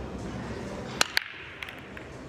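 A cue ball breaks a rack of pool balls with a sharp crack.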